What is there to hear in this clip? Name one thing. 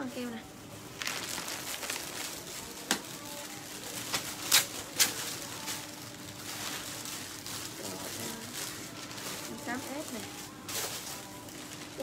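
Plastic packaging rustles and crinkles as it is handled.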